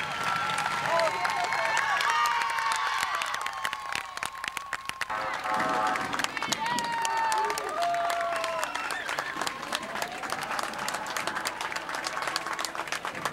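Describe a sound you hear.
A crowd cheers and shouts along a street outdoors.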